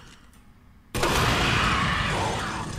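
A loud explosion roars with crackling flames.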